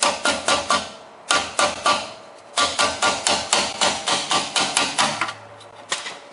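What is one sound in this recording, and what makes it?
A ratchet wrench clicks rapidly as a bolt is turned.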